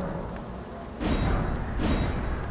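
A game confirmation chime sounds.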